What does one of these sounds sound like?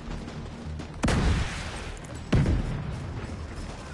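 Two explosions boom loudly, one after the other.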